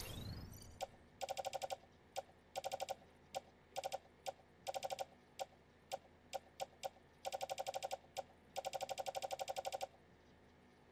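A game menu ticks rapidly in short bursts as items are scrolled through.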